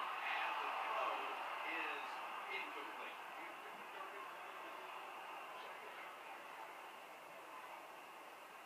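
A stadium crowd roars through a television speaker and slowly quiets down.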